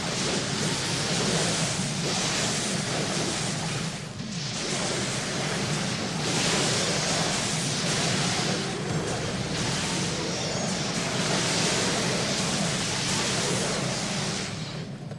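Spell blasts and clashing combat effects crackle and whoosh.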